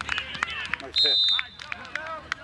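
A referee's whistle blows one short, shrill blast.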